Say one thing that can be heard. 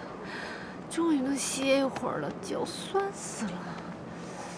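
A man and a woman talk quietly at a distance.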